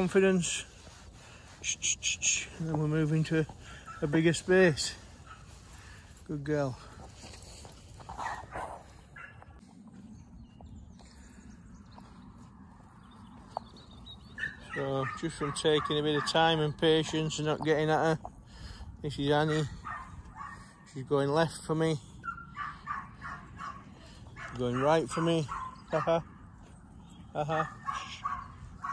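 A dog runs across soft dirt.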